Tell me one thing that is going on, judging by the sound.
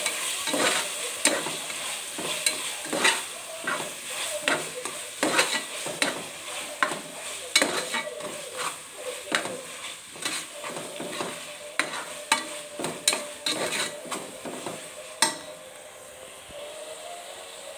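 Vegetables sizzle in hot oil.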